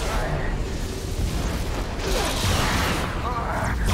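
Explosions burst with fiery booms.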